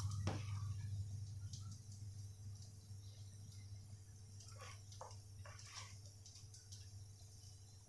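Oil sizzles and crackles steadily in a pan.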